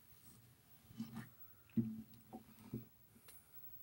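A man plays short notes on a harmonica.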